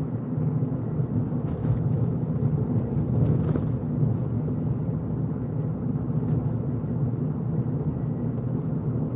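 A car engine hums steadily from inside while driving.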